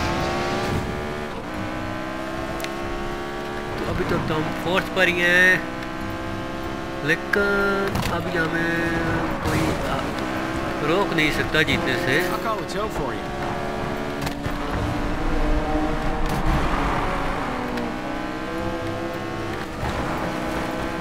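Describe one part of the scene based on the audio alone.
A racing car engine roars at high revs, shifting up and down.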